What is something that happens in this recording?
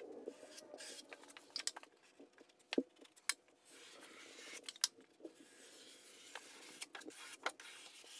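A metal putty knife scrapes along a wall.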